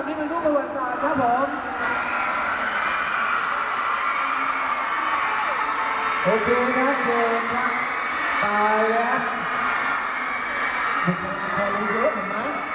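A crowd cheers and chatters loudly in a large echoing hall.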